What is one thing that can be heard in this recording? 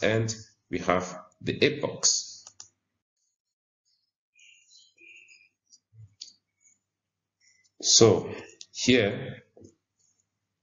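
A man speaks calmly and clearly into a microphone, with pauses.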